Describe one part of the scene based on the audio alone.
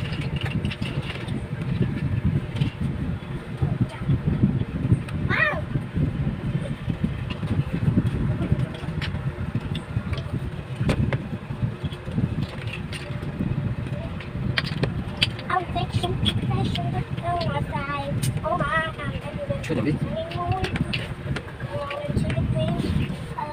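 Hands press plastic bottle caps onto a board with soft taps.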